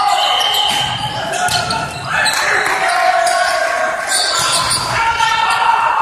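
A volleyball is struck with dull slaps.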